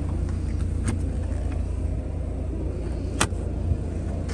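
A plastic handle clicks as a hand lifts it.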